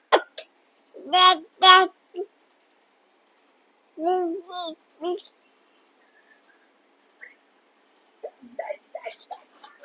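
A toddler babbles and coos close by.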